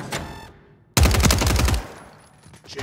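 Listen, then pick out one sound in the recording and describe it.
Gunfire bursts rapidly and loudly.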